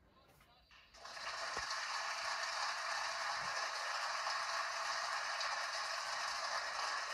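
An audience applauds steadily, heard through a television speaker.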